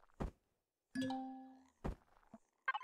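An electronic chime rings and fades.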